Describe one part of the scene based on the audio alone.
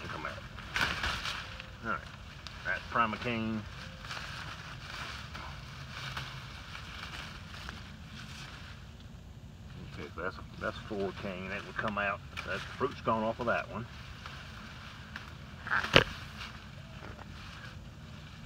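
Leaves rustle as hands push through a bush.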